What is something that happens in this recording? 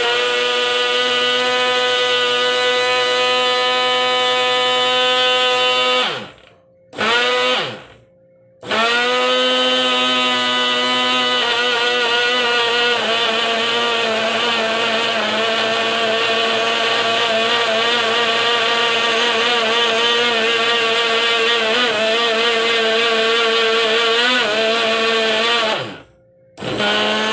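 A blender motor whirs loudly, stopping briefly and winding down each time.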